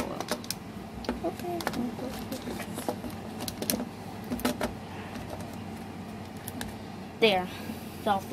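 Small plastic toys tap and knock together close by.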